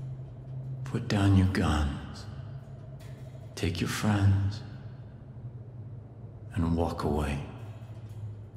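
A man speaks slowly and calmly in short phrases, close by.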